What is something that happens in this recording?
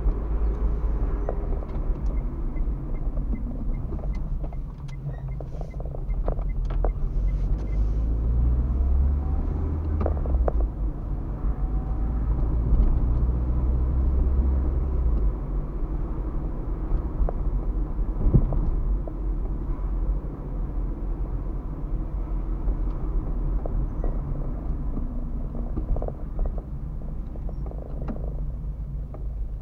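Tyres rumble over the road surface.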